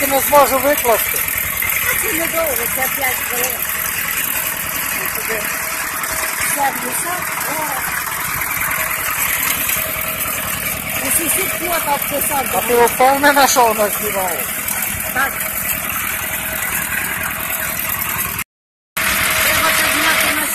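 A single-cylinder diesel walk-behind tractor chugs as it drives along a dirt track.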